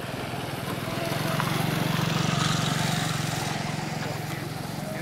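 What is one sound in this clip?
A motorbike engine hums as the motorbike rides past nearby.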